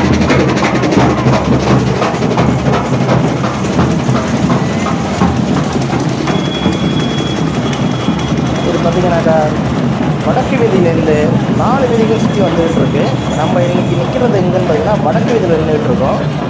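Drums beat loudly in a street procession.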